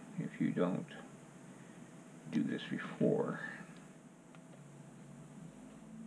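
A metal tool scrapes softly over soft clay.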